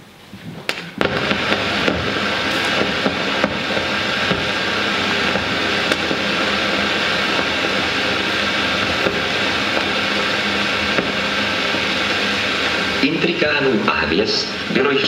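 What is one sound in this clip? An old film soundtrack hisses and crackles loudly through loudspeakers in a large hall.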